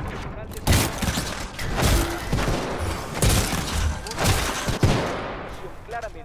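Heavy metallic blows and bursts crash in quick succession.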